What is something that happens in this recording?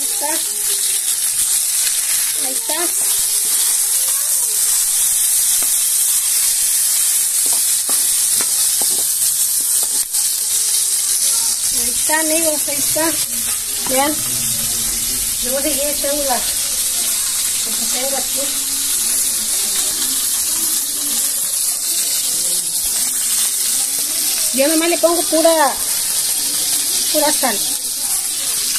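Food sizzles and crackles loudly in a hot frying pan.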